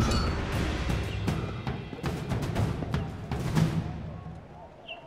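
Quick footsteps clatter across roof tiles.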